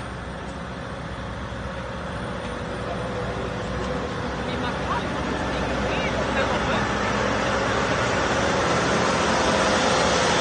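A diesel engine drones, growing louder as the vehicle's cab draws near.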